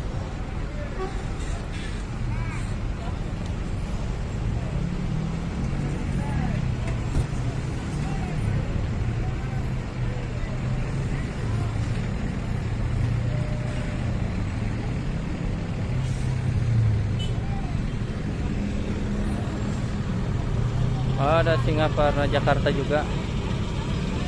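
Diesel coach engines rumble nearby.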